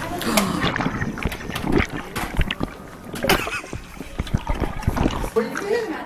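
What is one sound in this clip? A middle-aged man laughs close to a microphone.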